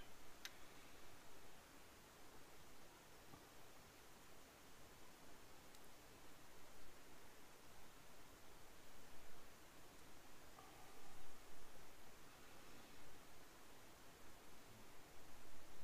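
Light wind rumbles softly outdoors.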